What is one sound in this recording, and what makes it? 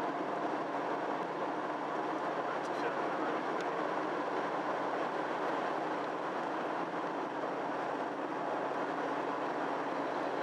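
A car engine hums steadily with tyre noise on the road.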